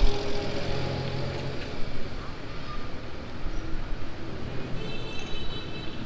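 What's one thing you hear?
A motor tricycle engine putters nearby.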